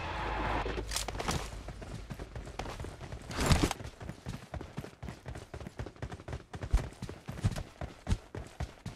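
Footsteps patter quickly on dirt.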